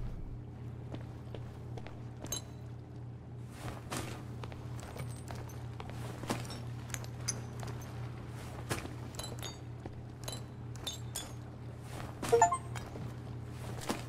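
Small objects click and clatter as they are picked up off a hard floor.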